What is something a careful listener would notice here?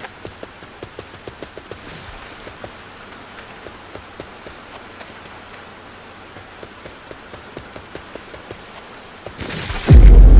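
Footsteps tread quickly and steadily over soft ground.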